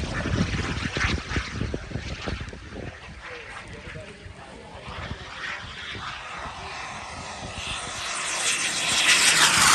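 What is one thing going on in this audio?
A small jet engine roars in the sky, growing louder as it comes closer.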